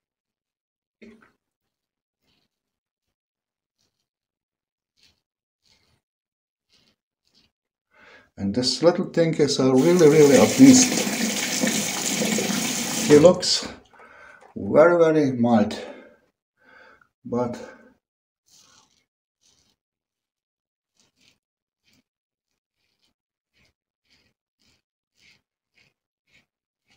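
A double-edge safety razor scrapes through stubble.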